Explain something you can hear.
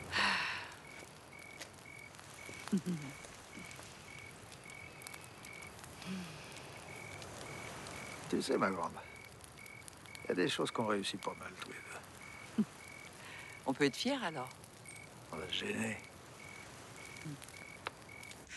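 A woman speaks softly and close by.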